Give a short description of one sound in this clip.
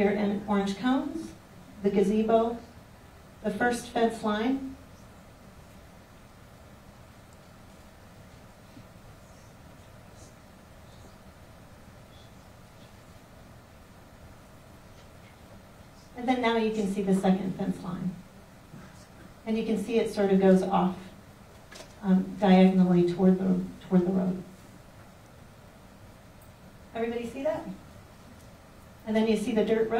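A woman speaks calmly into a microphone, asking questions with long pauses.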